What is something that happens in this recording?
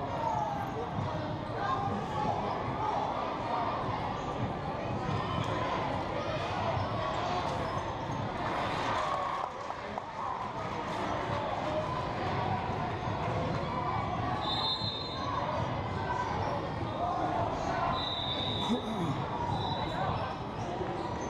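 Basketball shoes squeak sharply on the wooden court.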